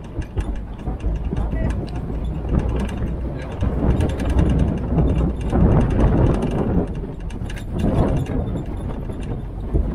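An open vehicle's engine rumbles steadily.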